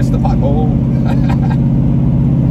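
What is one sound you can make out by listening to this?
A young man laughs close by inside a car.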